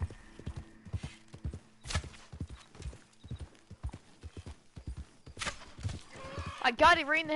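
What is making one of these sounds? Horse hooves thud rhythmically on soft ground.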